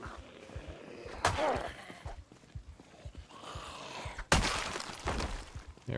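A blunt weapon thuds against a body.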